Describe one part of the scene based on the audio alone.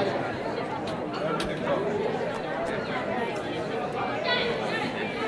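Several people talk and murmur at once in a busy room.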